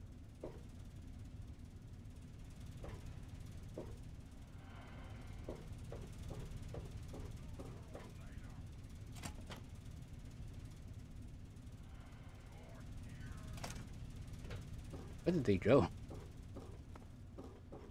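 Footsteps clang on a metal floor.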